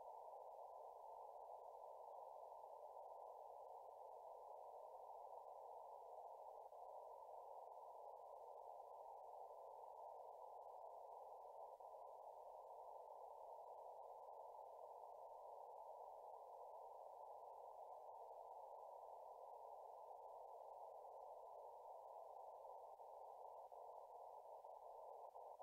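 A radio receiver puts out a steady, muffled rushing hiss.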